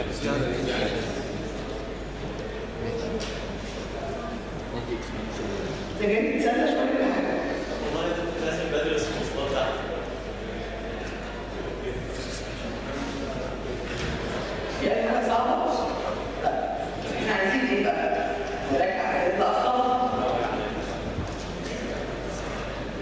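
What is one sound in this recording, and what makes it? A man speaks calmly, as if lecturing.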